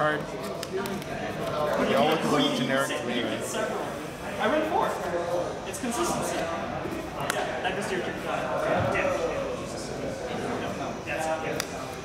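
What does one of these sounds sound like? Playing cards are shuffled and slapped down onto a soft mat.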